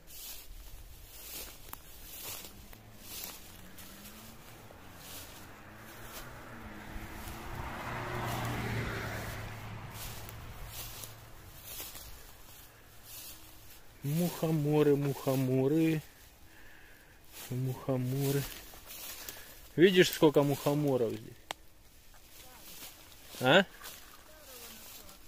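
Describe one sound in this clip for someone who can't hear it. Footsteps rustle and crunch through dry leaves and grass.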